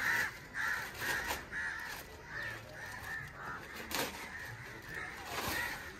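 Plastic wrapping crinkles as it is pulled off a part.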